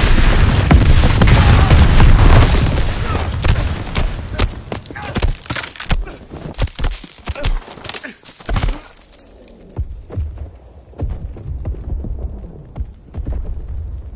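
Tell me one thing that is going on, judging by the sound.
A fire roars and crackles nearby.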